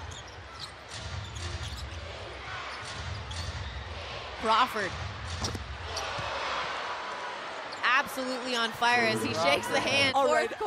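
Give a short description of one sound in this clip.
A basketball thumps as it is dribbled on the floor.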